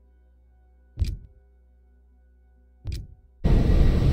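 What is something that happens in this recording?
Menu clicks sound twice.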